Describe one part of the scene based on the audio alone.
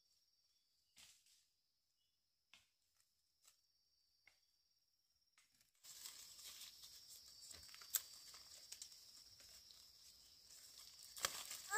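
Fruit stems snap off with small clicks.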